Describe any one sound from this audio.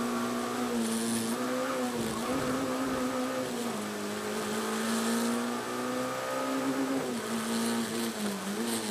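A car engine roars loudly from inside the cabin, its pitch rising and dropping with gear changes.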